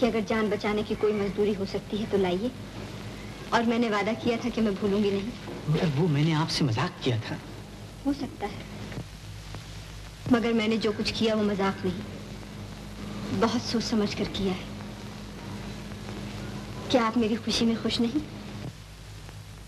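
A woman speaks calmly and earnestly, close by.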